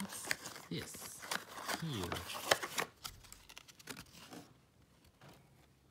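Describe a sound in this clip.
A cardboard box is handled and flaps shut.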